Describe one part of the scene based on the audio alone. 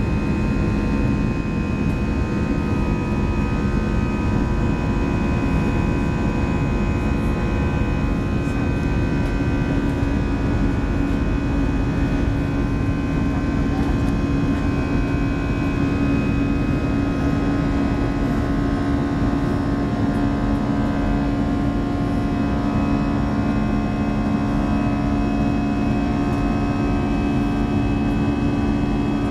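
A jet engine roars steadily from close by, heard from inside an airliner cabin.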